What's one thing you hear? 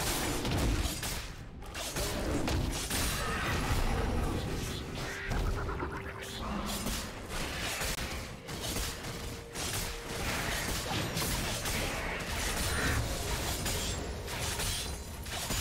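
Game fighting effects whoosh and clash.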